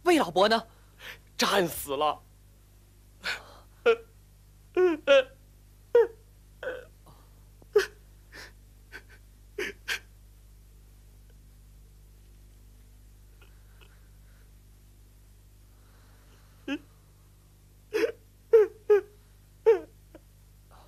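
A man speaks tearfully in a sobbing voice, close by.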